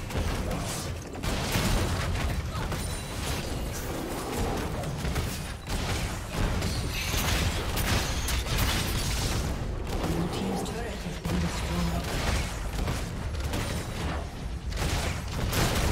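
Game spell effects and attacks crackle and burst during a fight.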